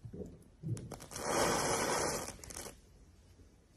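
A match head flares with a fizzing hiss.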